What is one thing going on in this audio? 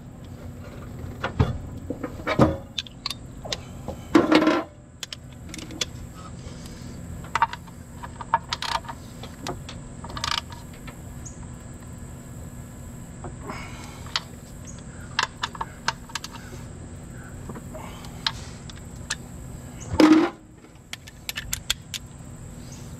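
Metal parts clink and knock together.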